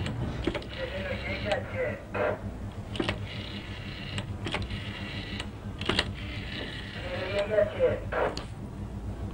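A faint voice comes through a telephone earpiece.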